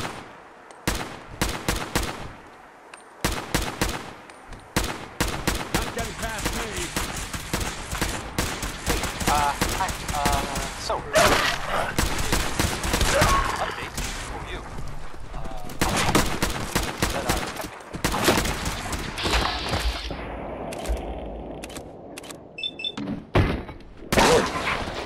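A rifle fires shot after shot.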